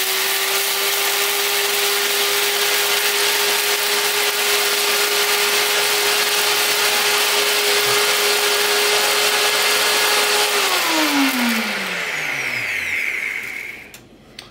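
A blender whirs loudly, then winds down to a stop.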